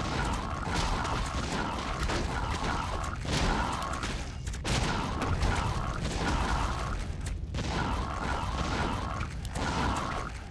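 Fiery explosions burst.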